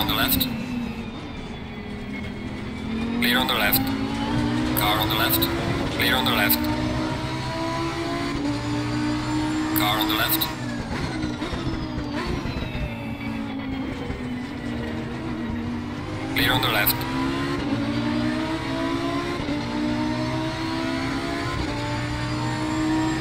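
A race car engine roars steadily, its pitch climbing and dropping as it shifts gears.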